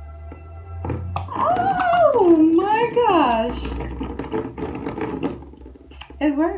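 Water pours out of a bottle and splashes.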